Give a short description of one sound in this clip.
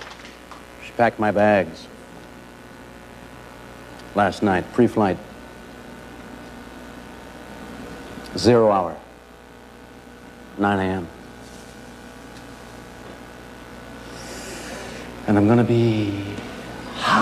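A man speaks slowly and dramatically, in short phrases with long pauses.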